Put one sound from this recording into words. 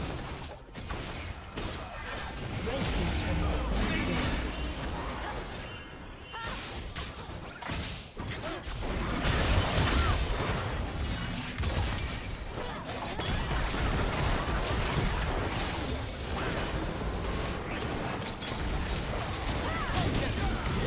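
Video game spell effects whoosh and clash in a busy battle.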